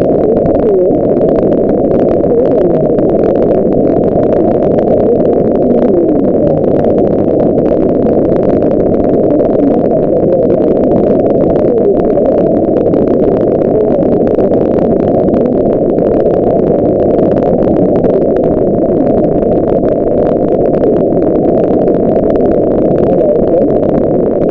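A shortwave radio receiver gives out steady, muffled static hiss.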